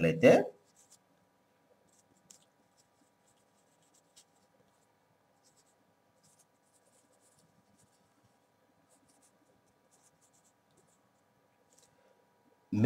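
A marker pen squeaks and taps faintly on a whiteboard.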